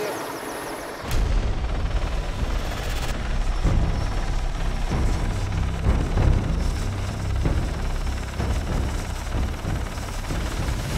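A helicopter's rotor and engine roar loudly and steadily.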